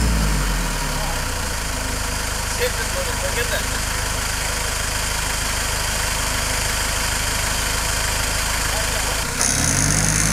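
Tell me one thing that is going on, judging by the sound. An engine idles with a low rumble.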